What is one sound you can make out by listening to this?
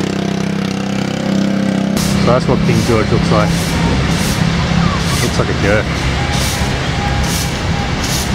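A broom sweeps across pavement in quick scratchy strokes.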